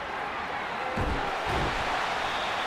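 Players collide in a tackle with dull thuds.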